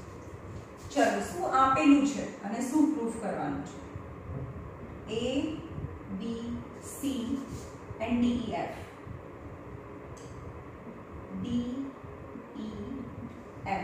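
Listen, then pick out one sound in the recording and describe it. A young woman speaks calmly, nearby.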